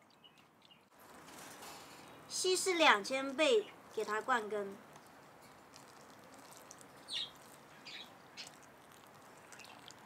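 Water pours from a watering can onto soil.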